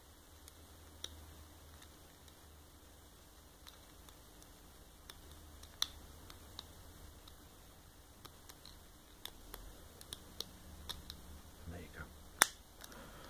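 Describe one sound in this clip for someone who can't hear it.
A lock pick scrapes and ticks faintly inside a padlock.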